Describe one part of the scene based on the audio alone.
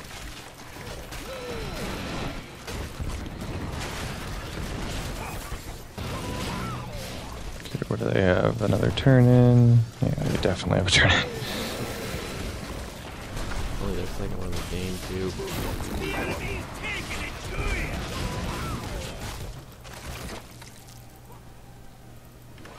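Fantasy battle sounds of spells and blows clash without pause.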